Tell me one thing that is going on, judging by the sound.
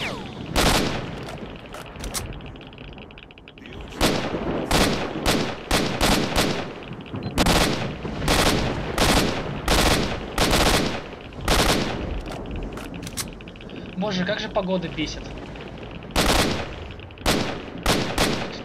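A rifle fires loud single shots again and again, each followed by a short echo.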